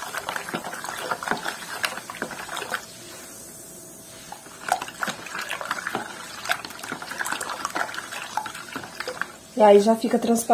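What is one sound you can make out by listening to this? A spoon scrapes and stirs inside a plastic tub.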